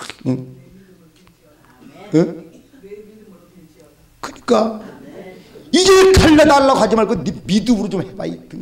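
A middle-aged man speaks into a microphone with growing animation, his voice carried over a loudspeaker.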